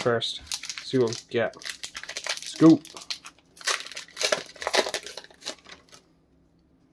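A foil wrapper crinkles and tears between fingers.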